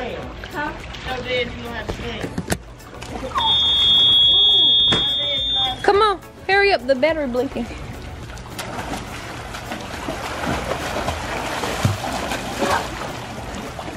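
Water splashes in a pool as a child swims.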